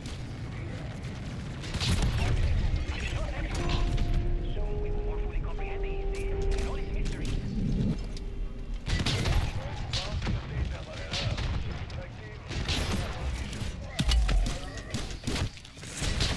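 Gunfire bursts rapidly.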